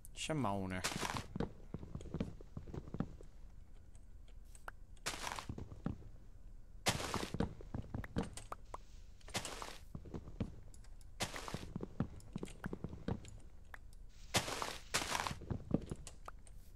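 A wooden block breaks loose with a short crunching burst.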